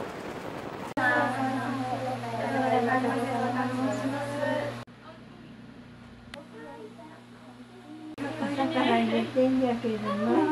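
Several young women greet in chorus, with bright, lively voices.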